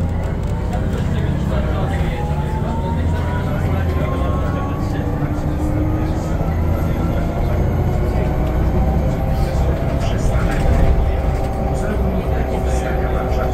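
The bus body rattles and creaks over the road.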